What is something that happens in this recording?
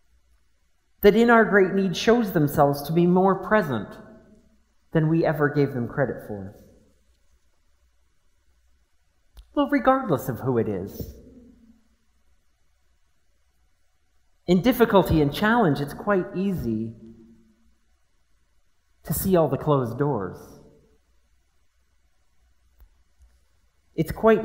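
A middle-aged man speaks slowly and calmly through a microphone, pausing between phrases, in a large echoing room.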